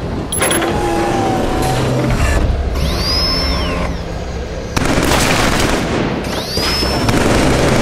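A heavy mounted machine gun fires in rapid bursts.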